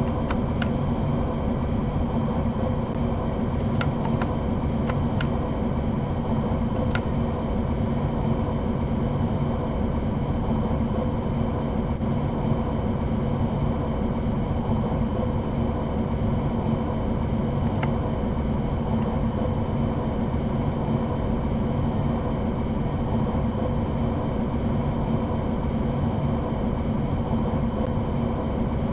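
Wheels rumble and clatter over the track.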